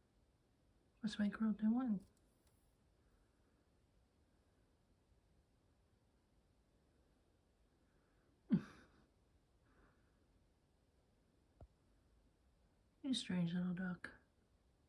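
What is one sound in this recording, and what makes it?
A kitten meows loudly close by, a few times.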